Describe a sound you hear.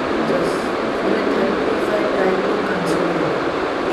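A teenage boy speaks calmly close by.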